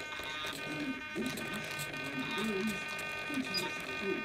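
A small servo motor whirs briefly as a hatch swings open.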